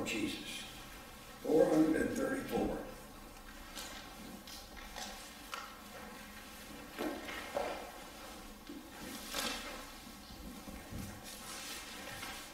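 An elderly man speaks calmly in a small echoing hall.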